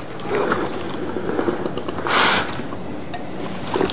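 A steam iron hisses as it presses cloth.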